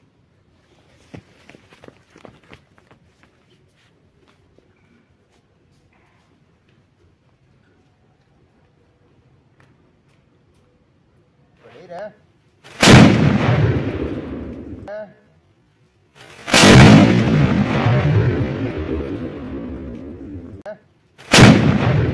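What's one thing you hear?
A firework fuse fizzes and sparks.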